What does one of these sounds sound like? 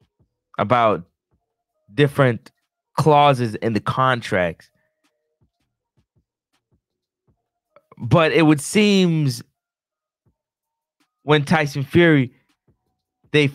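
A man talks close into a microphone, in short bursts with pauses.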